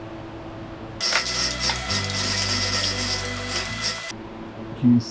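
A chain hoist rattles as its chain is pulled.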